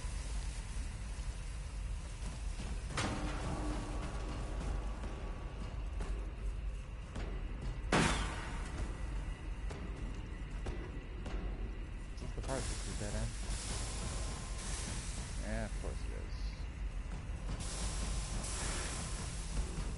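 Heavy armoured footsteps clank on metal grating.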